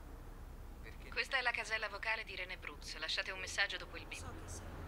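A man speaks quietly on a phone, close by.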